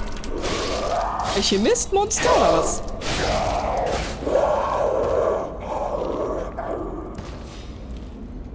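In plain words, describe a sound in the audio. Weapons clash and strike loudly in a fight.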